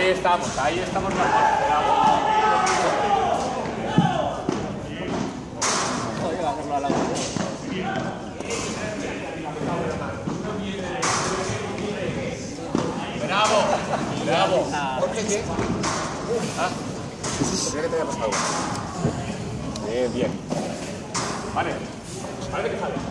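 Balls knock off rackets in a large echoing hall.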